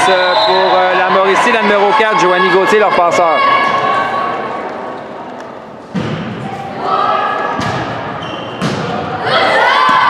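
Young women shout and cheer loudly in a large echoing gym.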